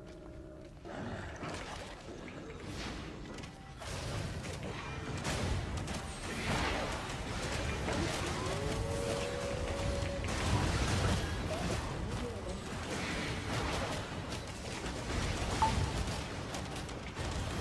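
Spell blasts whoosh, zap and clash loudly in a fight.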